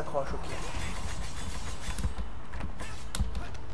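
A glowing blade slashes with a sharp electric whoosh.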